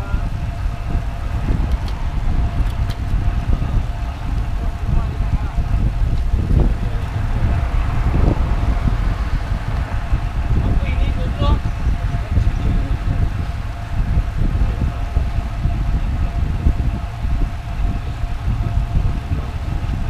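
Bicycle tyres hum steadily on a paved road.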